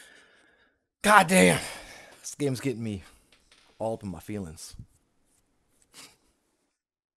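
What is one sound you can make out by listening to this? A young man talks animatedly and close to a microphone.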